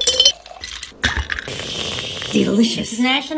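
A person sips loudly through a straw.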